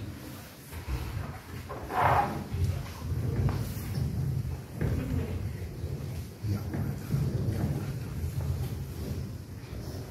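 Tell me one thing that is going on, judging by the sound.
A man reads aloud in a steady chanting voice in a reverberant hall.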